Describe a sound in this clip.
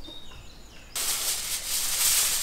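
A sheet of foil rustles and crinkles.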